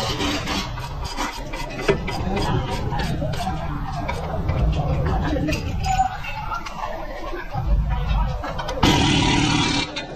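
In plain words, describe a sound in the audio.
A ratchet wrench clicks rapidly as it turns a bolt.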